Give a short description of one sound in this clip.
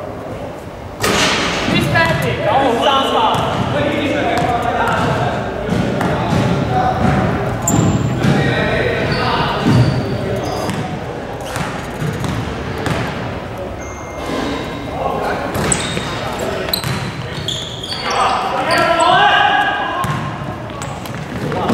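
Young men call out to one another across the hall.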